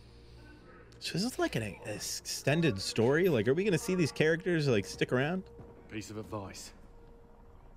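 A man speaks in a deep voice, heard through a loudspeaker.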